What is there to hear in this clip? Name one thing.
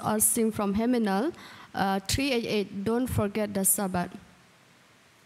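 A young woman speaks with feeling into a microphone, heard through loudspeakers in a large hall.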